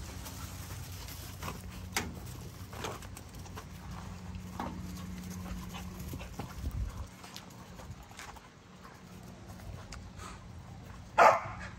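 Puppies crunch dry kibble.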